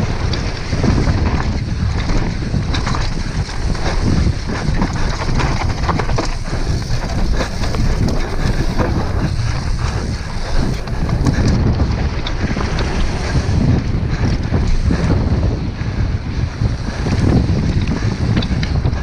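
A bicycle frame clatters over bumps.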